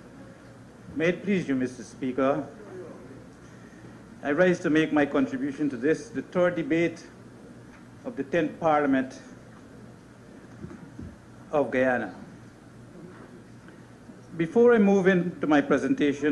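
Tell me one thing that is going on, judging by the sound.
An elderly man speaks slowly into a microphone, in short phrases with long pauses.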